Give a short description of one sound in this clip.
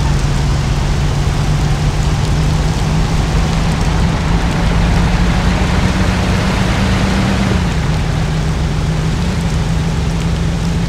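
An old car engine hums steadily as the car drives along.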